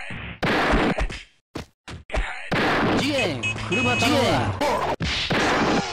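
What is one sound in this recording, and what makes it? Punches land with sharp smacking hits.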